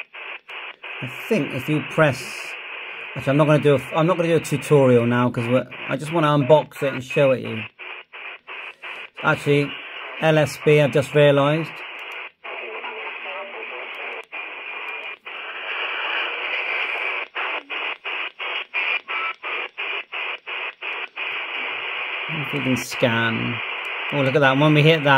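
A man's voice talks through a small radio speaker, thin and crackly.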